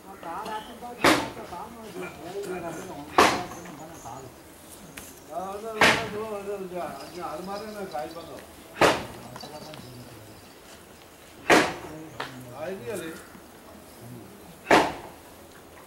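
Cattle munch and rustle through dry hay close by.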